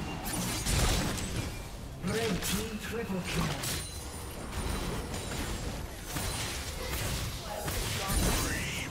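Game sword strikes and impacts clang repeatedly.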